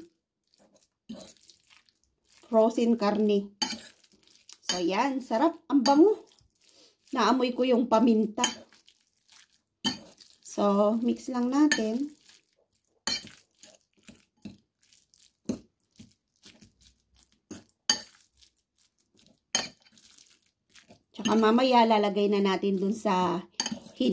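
A fork mashes minced meat and clicks against a bowl.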